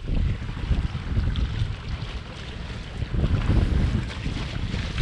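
Waves slosh against a boat's hull.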